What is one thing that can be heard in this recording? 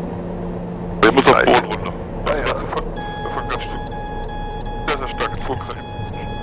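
A man speaks briefly over a headset intercom.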